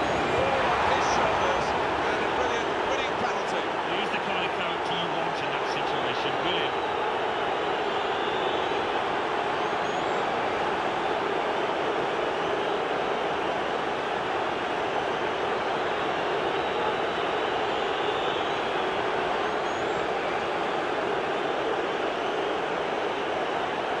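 A large stadium crowd roars and cheers loudly throughout.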